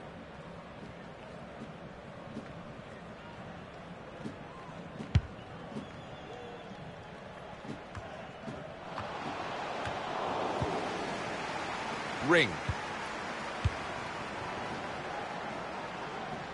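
A stadium crowd murmurs and swells into a roar.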